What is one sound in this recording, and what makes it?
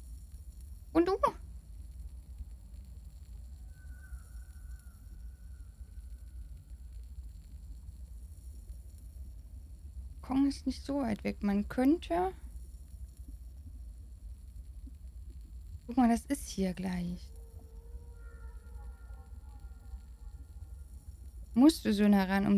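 A young woman speaks casually into a close microphone, in short bursts.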